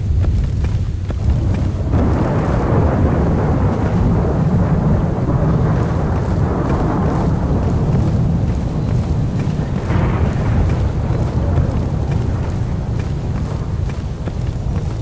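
Wind blows in low gusts outdoors.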